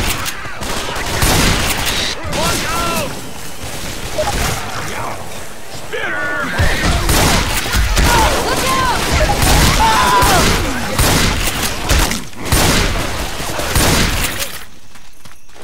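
Shotgun blasts fire rapidly and loudly.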